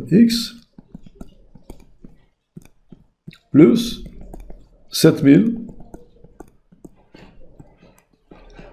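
A stylus taps and scratches on a tablet surface.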